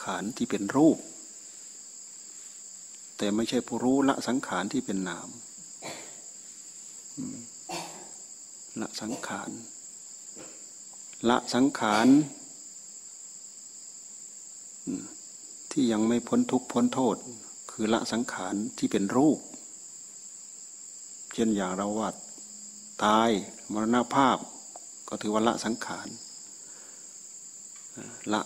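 An elderly man speaks calmly, in short phrases with pauses.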